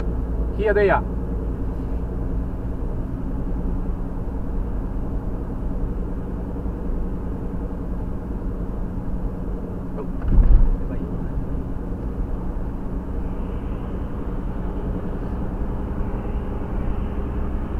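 A car drives at highway speed, with engine and road noise heard from inside.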